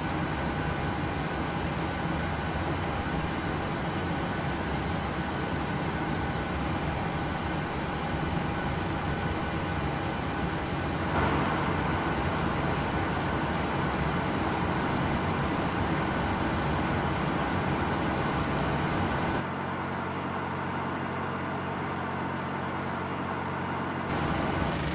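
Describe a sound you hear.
A jet engine whines and roars steadily, louder close by.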